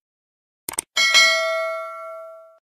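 A bell chimes and rings out.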